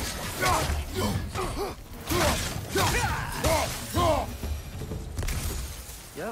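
Heavy blows thud and clang in a close fight.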